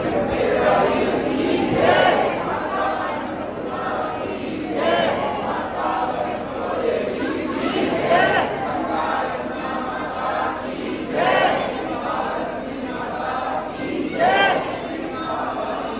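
A large crowd of men and women chant a devotional song together.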